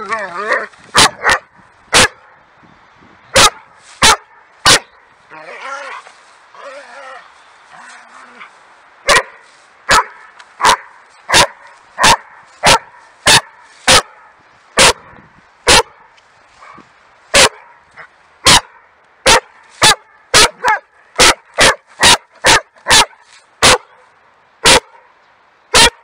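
A dog barks loudly and sharply, over and over.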